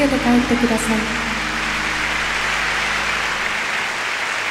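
A young woman sings into a microphone, close and clear.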